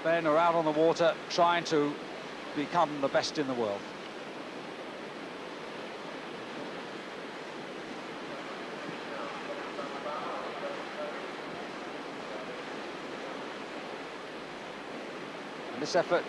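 Whitewater rushes and churns steadily.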